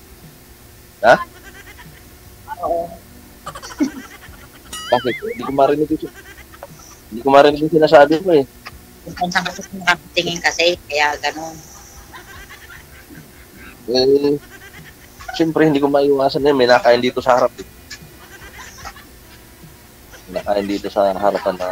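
A man talks over an online call.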